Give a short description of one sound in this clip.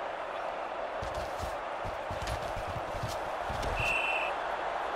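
Football players collide with dull thuds.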